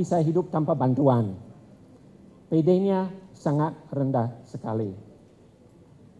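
A middle-aged man speaks with animation into a microphone, heard through loudspeakers.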